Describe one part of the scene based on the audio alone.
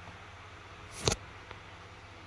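A cup knocks on a stone counter.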